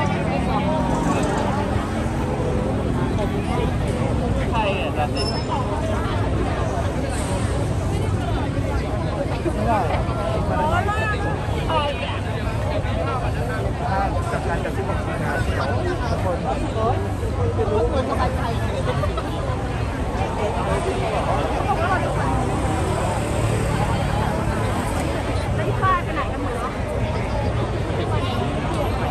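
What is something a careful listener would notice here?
A large crowd of young men and women chatters loudly outdoors.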